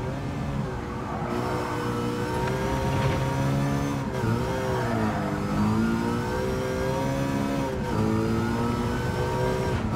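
A racing car engine roars loudly, its pitch rising and dipping as gears shift.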